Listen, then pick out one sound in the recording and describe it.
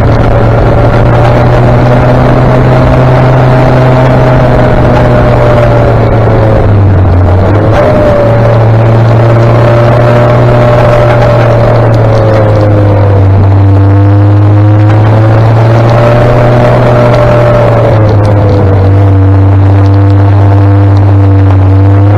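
A motorcycle engine hums steadily, its pitch rising and dipping as the rider changes speed.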